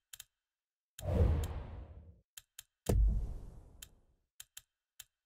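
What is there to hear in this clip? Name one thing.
A deep whoosh sweeps in twice and fades.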